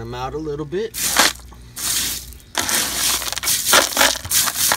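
A hand rakes through loose pebbles, making them clatter.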